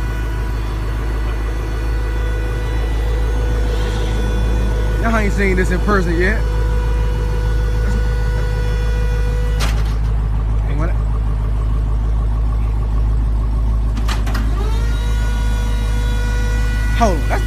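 A car engine rumbles low and steady.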